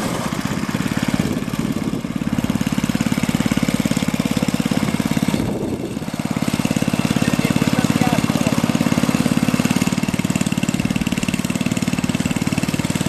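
A small engine chugs steadily close by.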